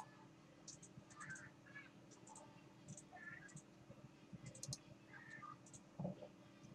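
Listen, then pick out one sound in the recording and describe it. Retro video game sound effects beep and chirp.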